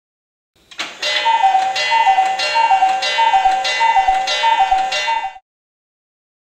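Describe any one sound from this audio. A cuckoo clock calls its two-note cuckoo over and over.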